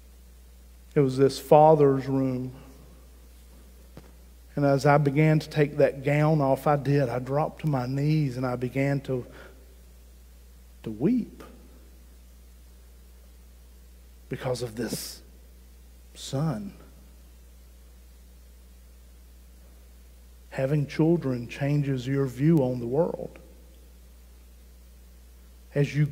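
A middle-aged man speaks with animation through a microphone, in pauses.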